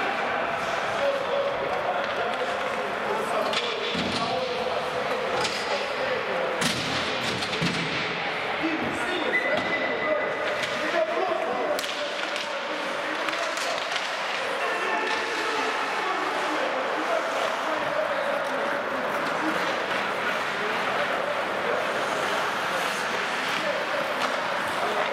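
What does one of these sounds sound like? Young men shout to each other in a large echoing rink.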